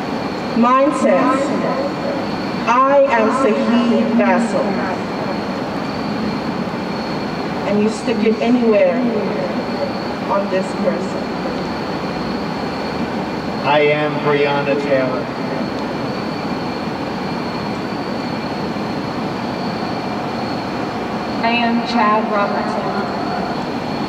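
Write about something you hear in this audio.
Adults speak in short bursts outdoors, heard from a little distance.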